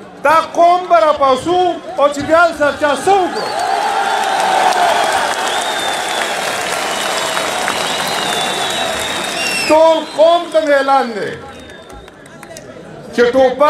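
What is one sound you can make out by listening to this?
An older man shouts a speech with passion through a microphone and loudspeaker.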